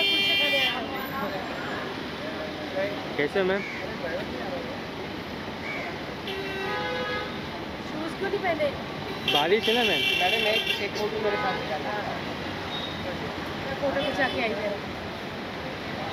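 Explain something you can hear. Several adult men talk and call out at once.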